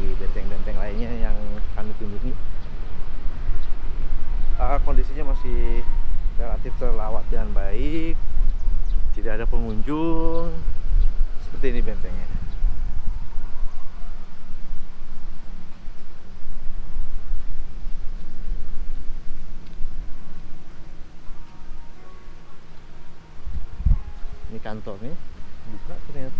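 Wind blows and buffets the microphone.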